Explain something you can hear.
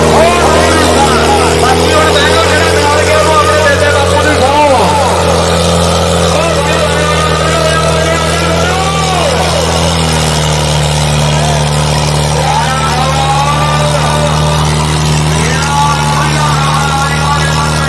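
A tractor engine roars loudly and steadily under heavy load.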